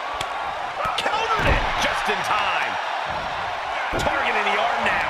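Bodies slam hard onto a ring mat.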